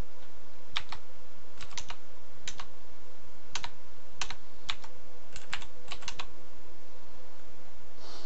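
Short electronic blips sound as game menu options are selected.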